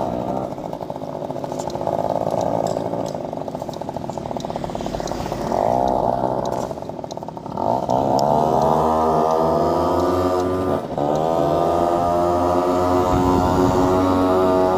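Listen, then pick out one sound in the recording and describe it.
A motorcycle engine putters at low speed, then revs and rises in pitch as it speeds up.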